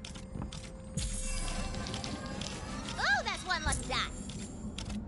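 A game loot box bursts open with a bright, chiming sparkle.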